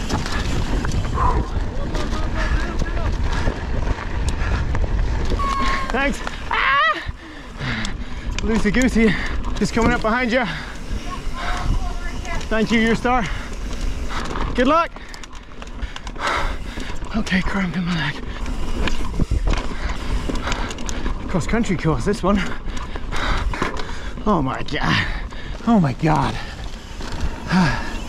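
Bike tyres rumble and crunch over a dirt trail.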